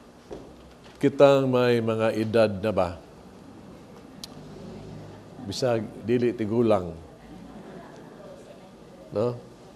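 A middle-aged man speaks calmly into a microphone, in bursts with pauses.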